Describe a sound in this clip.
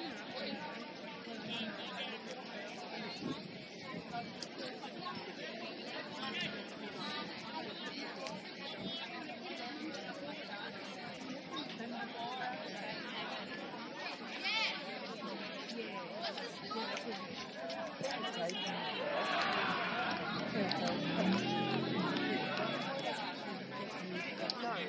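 Many young women and girls chatter and call out at a distance outdoors.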